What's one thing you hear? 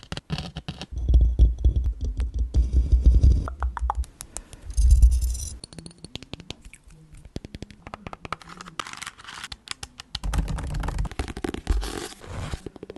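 Fingers rub and brush against a microphone, making soft, deep rumbling.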